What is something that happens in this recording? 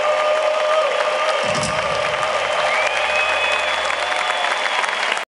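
A live rock band plays loudly in a large echoing arena.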